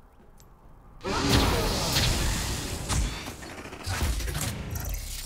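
Fiery game spell effects whoosh and burst.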